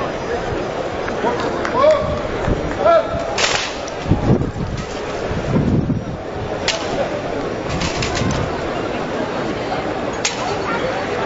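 A large crowd murmurs outdoors in the background.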